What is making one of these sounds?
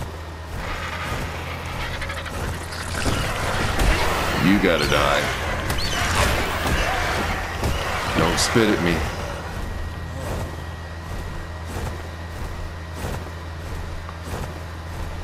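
Large wings flap with a whooshing beat.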